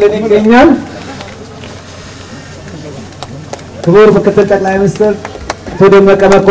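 A crowd of men and women sings loudly close by, in bursts.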